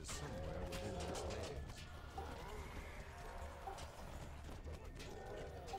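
Weapons clash and thud in a fantasy game battle.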